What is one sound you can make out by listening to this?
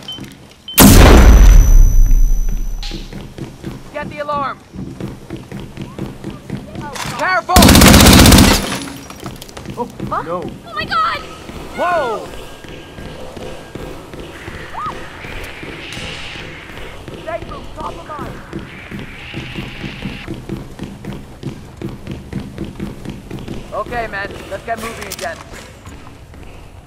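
Footsteps tap on a hard floor and stairs.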